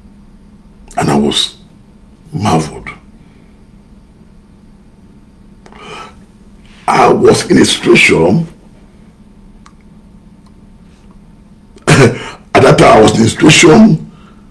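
A man speaks close to a microphone in short bursts, with animation.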